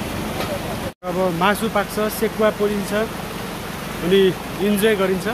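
A stream trickles over stones nearby.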